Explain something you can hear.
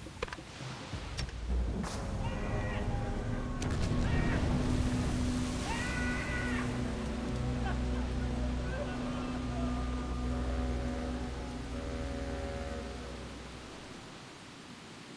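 Explosions rumble deeply and fires roar.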